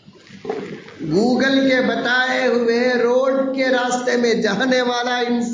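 A man chants in a long, drawn-out melodic voice through a microphone, in a reverberant hall.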